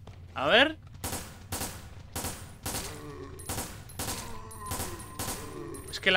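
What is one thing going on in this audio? Pistol shots fire in quick succession.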